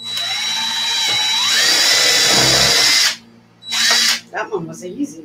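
A power drill whirs loudly, its pitch rising as it speeds up.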